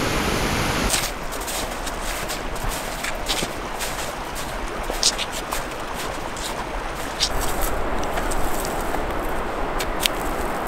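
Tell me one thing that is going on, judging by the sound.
Trekking poles tap and click on the ground.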